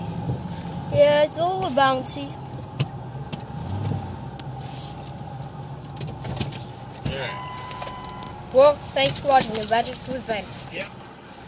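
Men shout outside a car.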